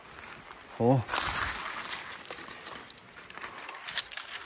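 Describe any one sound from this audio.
Dry leaves rustle as a hand grips a plant stem.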